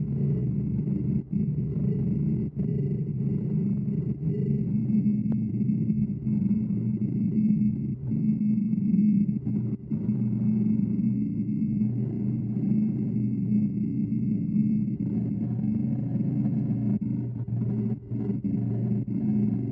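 A gouge scrapes and shaves wood on a spinning lathe.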